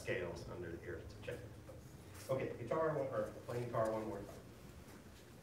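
A man speaks loudly, giving instructions in an echoing room.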